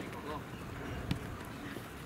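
A foot kicks a ball with a dull thump.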